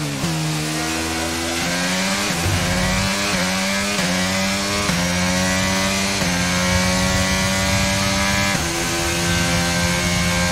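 A racing car engine screams at high revs, climbing in pitch as it shifts up through the gears.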